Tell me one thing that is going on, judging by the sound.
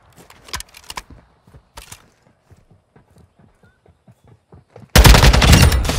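Footsteps tap on hard ground at a steady walking pace.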